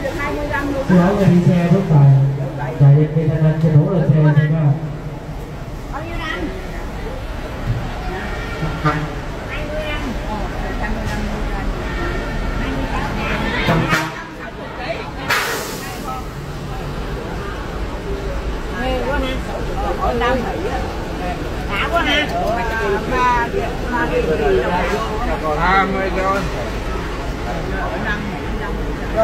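A crowd of people chatters nearby in a large echoing hall.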